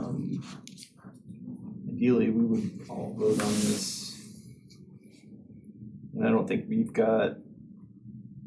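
A man speaks calmly in a quiet room, heard through a microphone.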